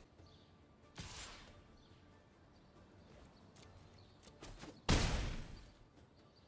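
A soft magical whoosh sounds as a game card attacks.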